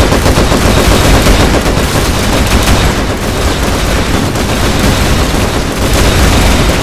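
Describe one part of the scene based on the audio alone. Game towers fire rapid shots and explosions crackle nonstop.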